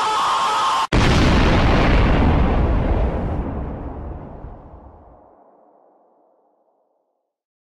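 A huge explosion booms and rumbles, then slowly fades away.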